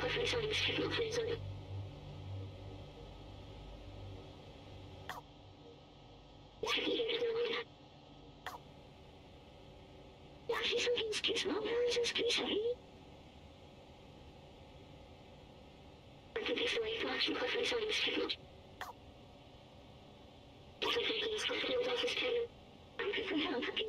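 A small robot chatters in short bursts of electronic babble.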